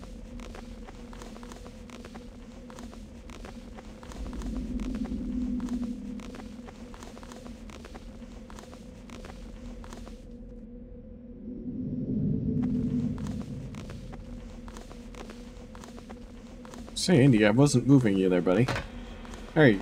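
Footsteps clang on metal ladder rungs in a steady rhythm.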